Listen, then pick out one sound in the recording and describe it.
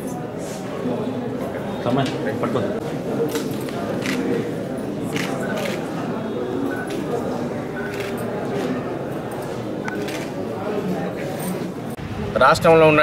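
Many people murmur and talk nearby.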